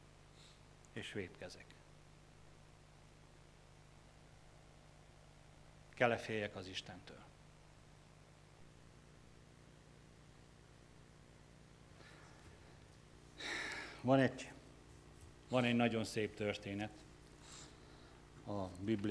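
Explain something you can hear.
A man speaks slowly through a microphone, with long pauses, in a slightly echoing room.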